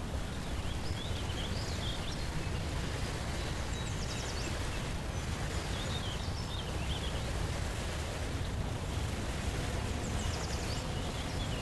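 Waves wash steadily onto a shore.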